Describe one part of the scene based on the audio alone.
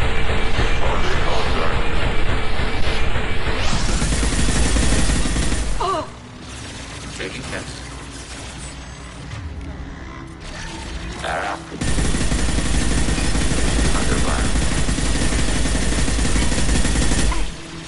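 Rapid gunfire and blasts roar loudly.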